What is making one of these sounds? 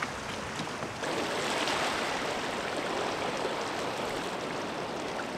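Water laps gently against a rocky shore.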